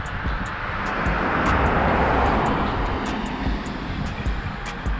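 A van drives along a nearby road, its tyres hissing on the wet surface.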